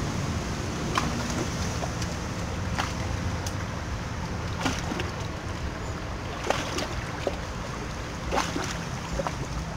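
A fishing reel ticks and clicks as line is wound in.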